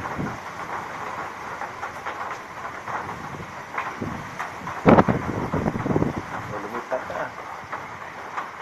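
Strong wind gusts roar past, loudest in a sudden blast midway.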